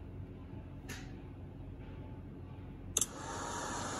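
A finger taps on a touchscreen.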